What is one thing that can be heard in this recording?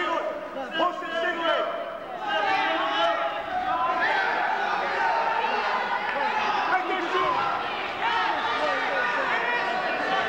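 Wrestlers' shoes squeak on the mat.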